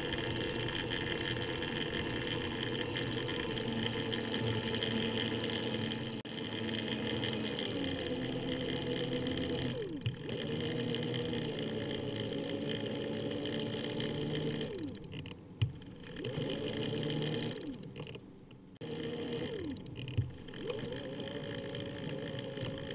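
Bicycle tyres roll steadily over smooth pavement.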